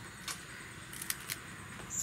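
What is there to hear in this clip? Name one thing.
A knife slices through fresh leaves.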